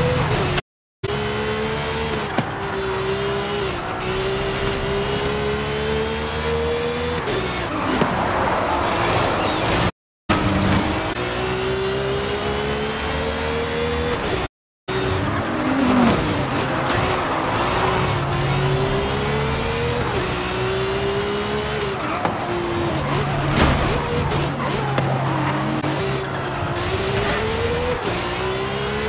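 A sports car engine roars loudly, revving up and dropping as the gears shift.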